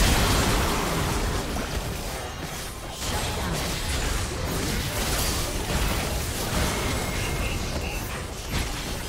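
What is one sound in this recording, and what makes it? Magic spells blast and crackle in a busy fight.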